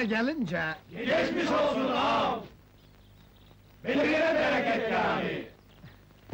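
A group of men shout together in chorus.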